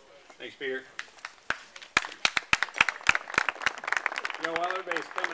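A crowd claps in applause.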